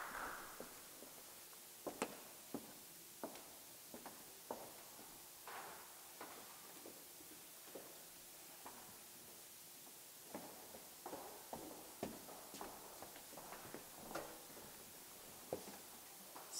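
Footsteps knock on a wooden stage.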